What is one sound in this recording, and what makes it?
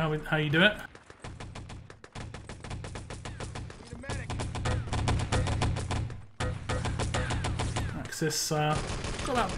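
A submachine gun fires in rapid bursts.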